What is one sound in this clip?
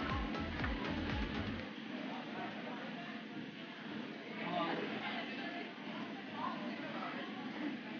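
A busy, echoing indoor hall hums.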